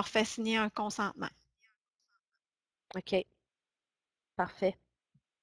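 A woman speaks calmly through an online call, in short bursts.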